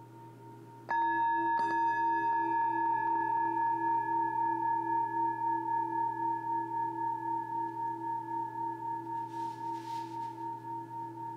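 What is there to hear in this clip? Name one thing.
Singing bowls ring out with a long, pulsing hum that slowly fades.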